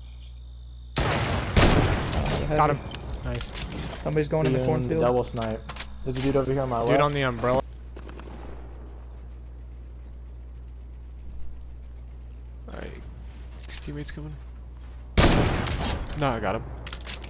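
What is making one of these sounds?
Sniper rifle shots crack loudly.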